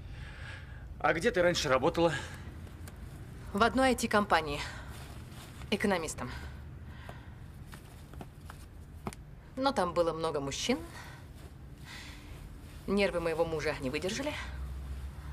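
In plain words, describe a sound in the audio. A young woman talks calmly, close by.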